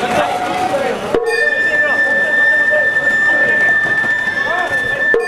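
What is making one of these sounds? A group of men chant and shout outdoors.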